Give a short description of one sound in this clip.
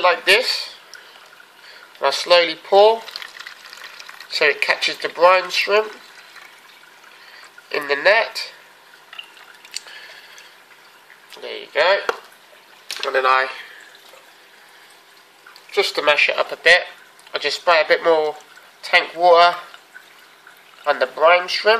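Water trickles through a fine mesh strainer into a cup.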